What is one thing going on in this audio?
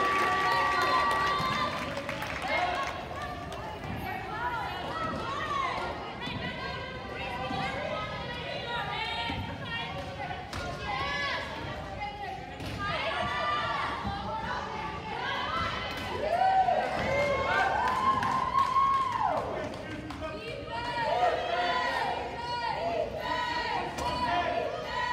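Spectators murmur and chatter in the background.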